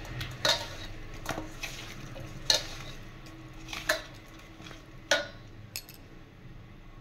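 Fish squelch and rub against a metal bowl as a hand mixes them.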